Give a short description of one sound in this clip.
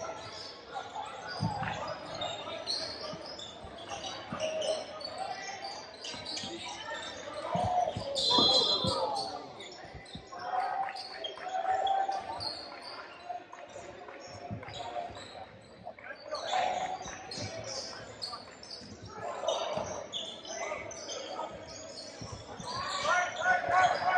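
Players and spectators call out in a large echoing gym.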